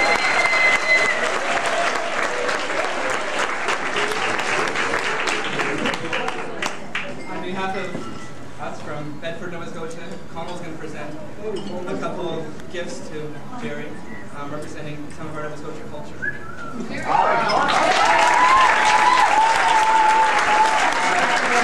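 A crowd of people chatters in the background.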